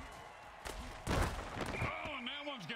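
Armored players crash together in a heavy tackle.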